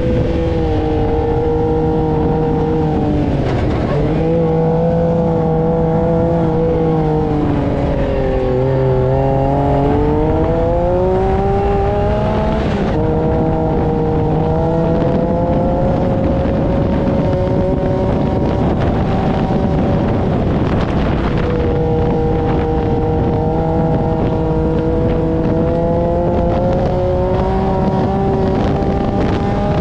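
An engine drones loudly, its pitch rising and falling as it revs.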